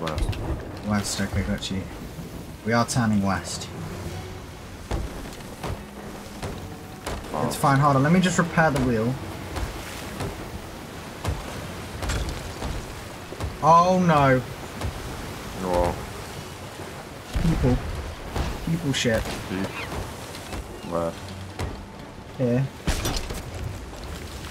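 Rough sea waves crash and surge.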